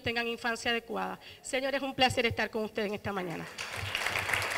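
A woman speaks with animation through a microphone in a large room.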